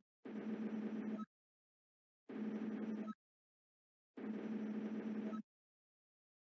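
Rapid electronic blips chatter in short bursts.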